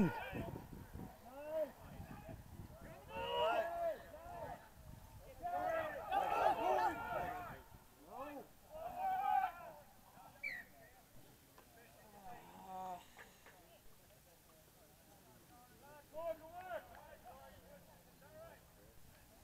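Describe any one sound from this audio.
Men shout and cheer from the sidelines outdoors.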